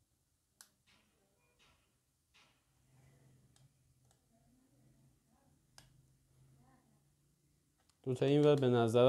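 A metal door lock clicks and rattles softly as it is handled.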